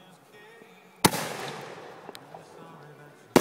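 A firework rocket launches with a sharp pop and a hissing whoosh.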